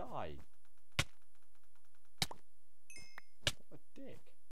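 A sword strikes with sharp, short hits.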